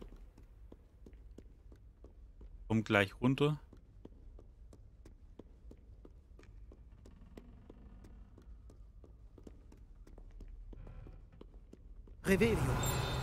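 Footsteps tap quickly up stone stairs.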